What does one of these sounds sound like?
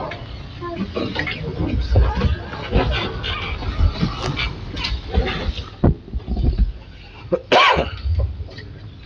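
People sit down on wooden benches with thumps and shuffling.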